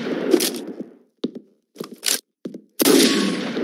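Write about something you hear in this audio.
A gun is reloaded with a metallic click.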